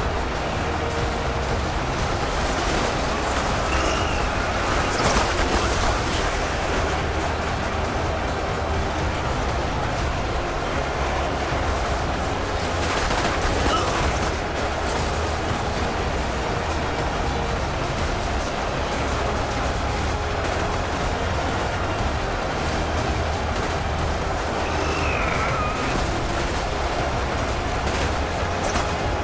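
A huge battle roars steadily.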